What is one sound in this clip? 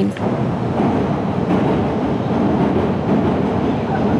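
A train rolls slowly into the station with a low rumble.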